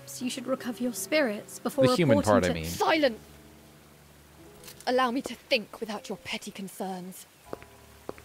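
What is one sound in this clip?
A young woman speaks sharply and commandingly, close by.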